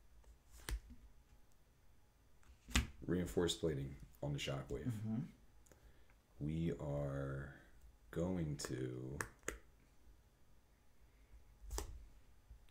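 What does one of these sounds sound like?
Playing cards tap and click on a tabletop.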